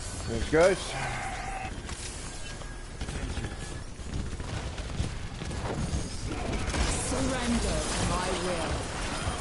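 Sharp impacts crack during a fight.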